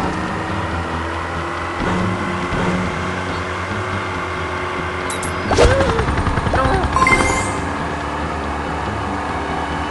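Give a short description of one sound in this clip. Water splashes and hisses under a jet ski.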